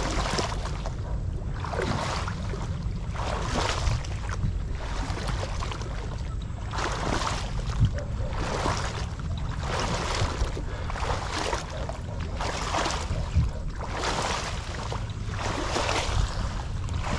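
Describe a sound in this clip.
Leaves rustle in the wind.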